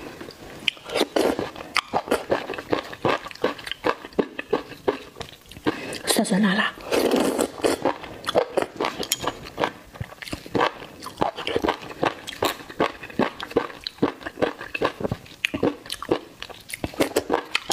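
A woman slurps noodles loudly and close up.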